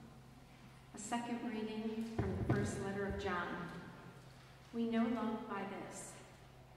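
A middle-aged woman speaks calmly into a microphone in a large echoing hall.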